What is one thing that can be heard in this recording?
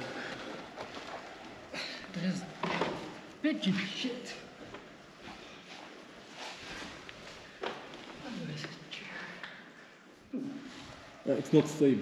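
Shoes scuff and thump on a window ledge.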